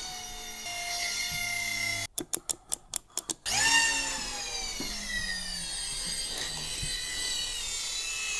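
A small toy helicopter's rotors whir with a high, steady whine.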